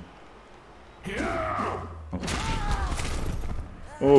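Armoured players collide with a heavy crunching thud.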